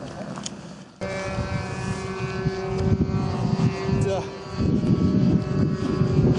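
A small model engine runs with a steady buzzing whine.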